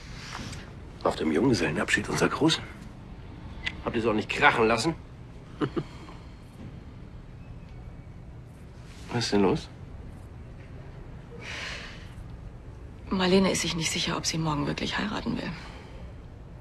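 A woman speaks quietly and tensely, close by.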